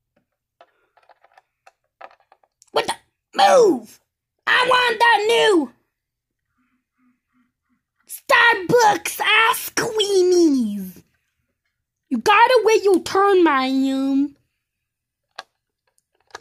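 Small plastic toy figures tap and click against a plastic board.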